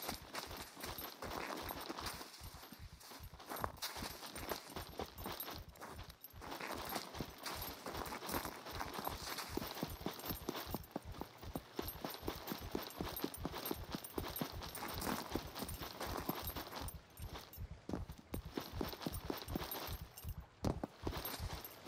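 Footsteps crunch steadily on sand and rock.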